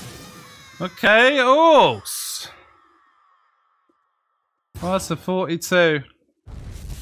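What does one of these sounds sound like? A young man exclaims excitedly, heard close through a microphone.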